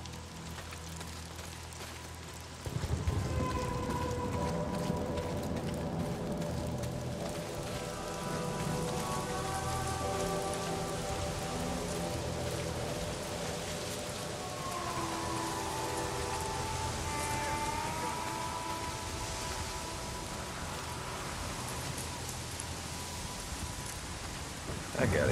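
Footsteps creep over grass and dirt.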